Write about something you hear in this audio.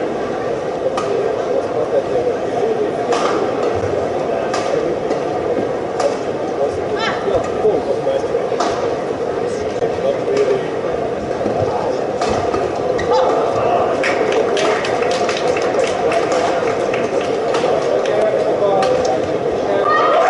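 Rackets strike a shuttlecock in a fast rally.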